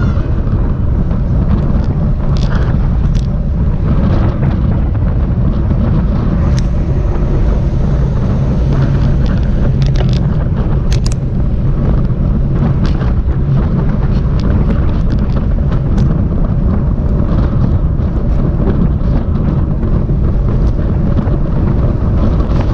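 Wind buffets a microphone loudly.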